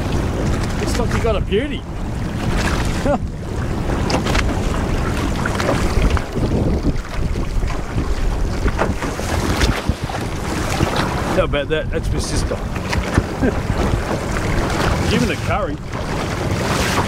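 Strong wind buffets the microphone outdoors on open water.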